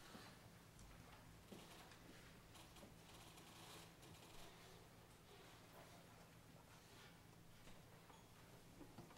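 An orchestra plays softly in a large hall.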